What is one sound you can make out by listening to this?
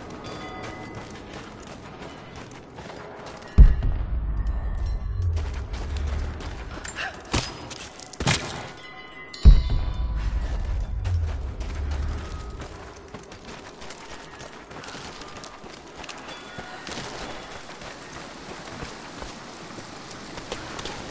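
Footsteps crunch on rock and gravel.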